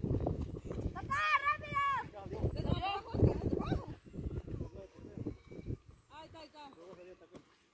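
Children shout and call out at a distance outdoors.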